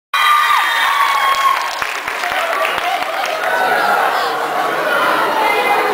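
A crowd of young people chatters excitedly in a large echoing hall.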